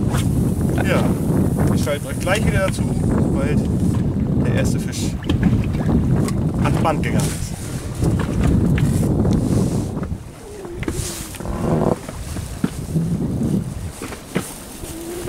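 Waves slap against a boat.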